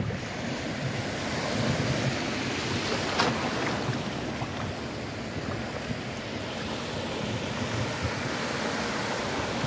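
Small waves lap and break gently close by.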